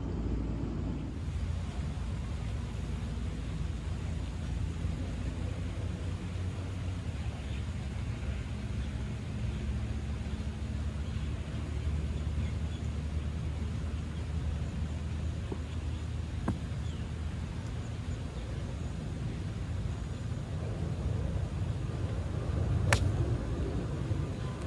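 Wind rumbles across an open outdoor space.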